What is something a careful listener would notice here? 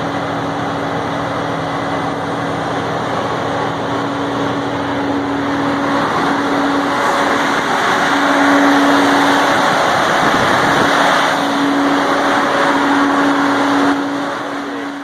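A truck engine runs loudly nearby with a steady rumbling hum.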